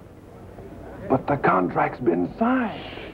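An older man speaks in a low, serious voice.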